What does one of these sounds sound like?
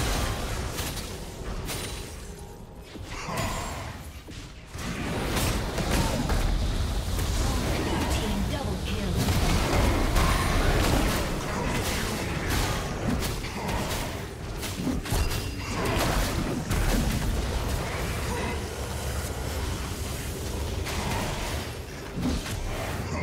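Magic blasts and impacts crackle and boom during a fast fight.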